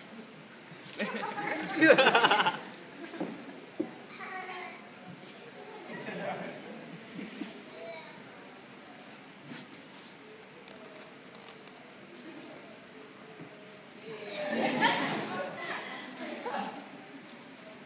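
An audience laughs in a hall.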